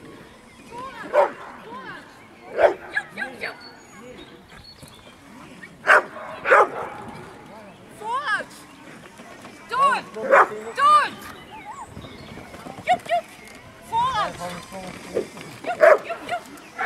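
A dog barks sharply in the open air, again and again.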